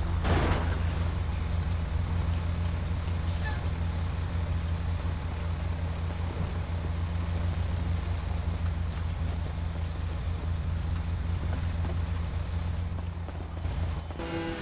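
A large truck engine idles with a low steady rumble.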